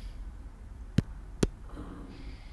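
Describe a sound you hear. Sharp impacts thud as attacks land.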